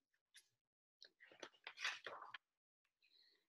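A book's pages rustle as they turn.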